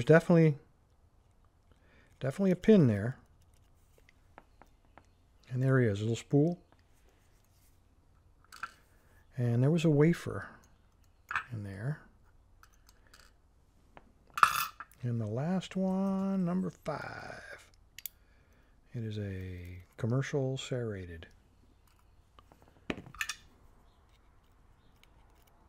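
A metal pick clicks and scrapes inside a lock.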